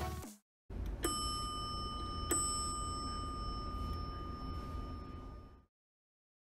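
An elevator chime rings twice.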